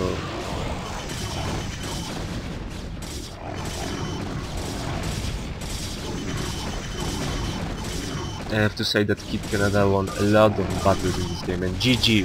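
Sci-fi weapons zap and crackle in a busy battle.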